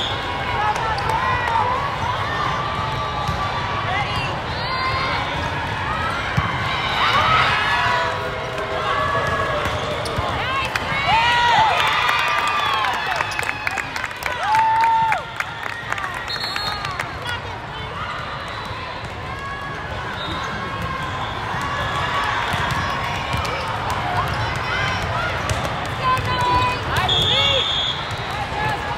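A large crowd of players and spectators chatters and shouts in a big echoing hall.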